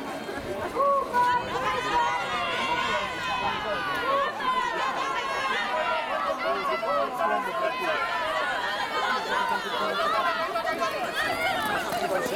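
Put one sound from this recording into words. A crowd of spectators cheers and shouts loudly nearby, outdoors.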